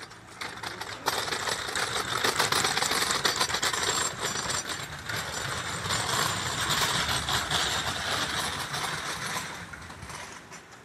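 A stretcher rattles as it is wheeled over paving stones.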